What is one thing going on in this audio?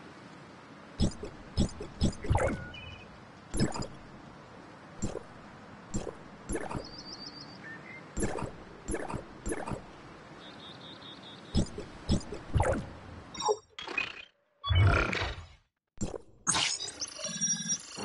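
Short interface clicks and beeps sound now and then.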